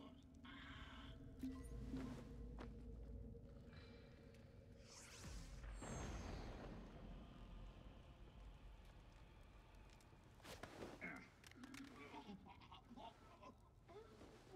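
Blows land with dull thuds in a scuffle.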